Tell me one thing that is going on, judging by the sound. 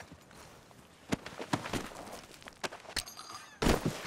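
Leather and cloth rustle as a body is searched.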